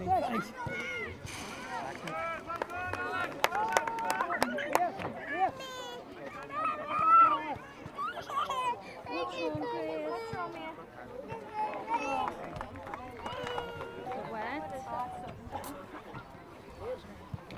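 Children shout and call out across an open outdoor pitch.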